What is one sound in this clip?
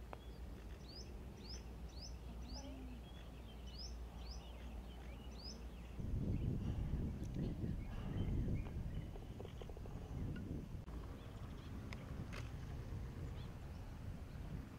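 A golf club strikes a ball off the tee with a sharp crack.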